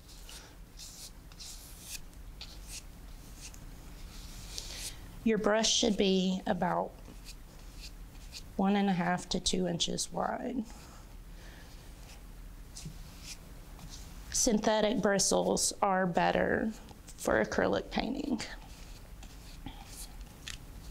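A paintbrush brushes softly across canvas.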